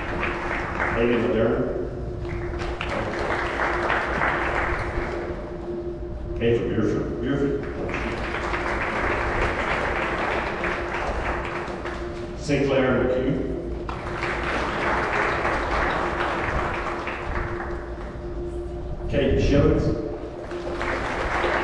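A man reads out over a loudspeaker in a large echoing hall.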